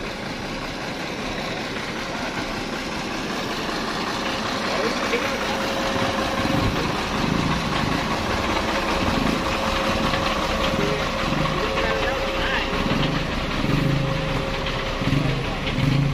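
A truck's diesel engine idles with a steady low rumble.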